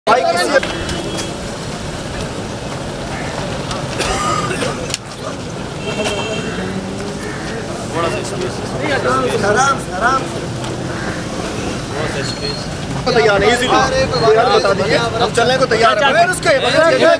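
A crowd of men talks and murmurs all around, close by.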